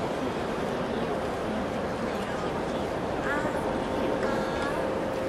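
A brass band plays.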